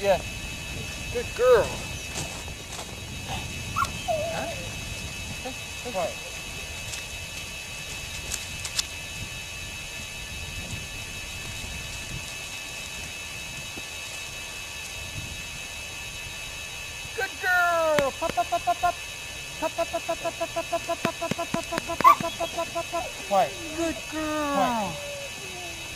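A puppy whines in short, high cries.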